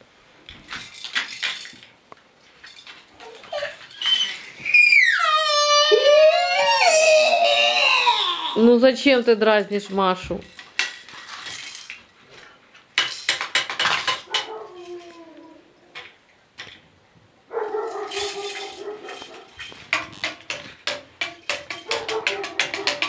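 Plastic toys rattle and clack as babies handle them.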